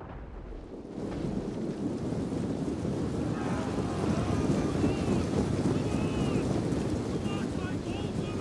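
A large battle rumbles with clashing weapons.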